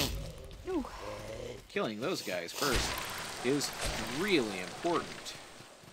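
Sword blades slash and clang against enemies in quick blows.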